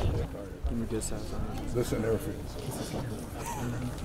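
A group of young men chat and laugh nearby.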